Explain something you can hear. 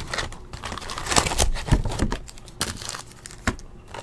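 A cardboard box flap rustles and scrapes.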